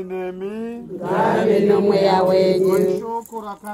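A woman sings loudly close by.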